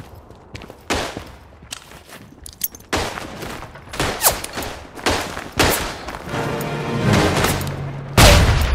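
Gunshots crack and echo in a tunnel.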